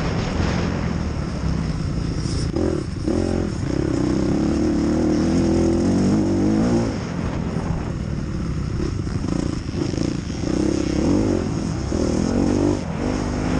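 A dirt bike engine revs hard and rises and falls in pitch close by.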